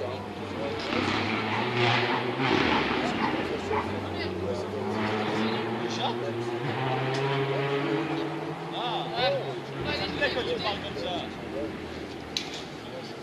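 A crowd of spectators chatters outdoors at a distance.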